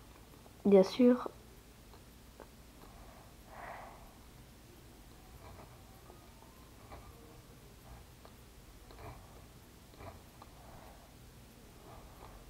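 A pen scratches lightly across paper.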